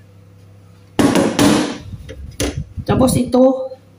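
A knife scrapes chopped greens off a wooden board into a bowl.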